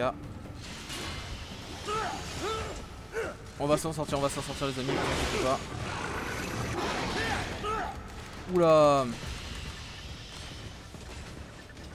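Blades clash and slash with sharp metallic rings.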